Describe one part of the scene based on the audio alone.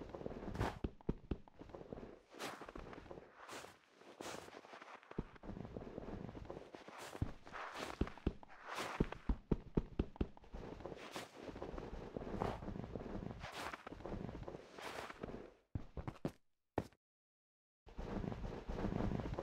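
Blocks crunch and crack as they are dug away, one after another.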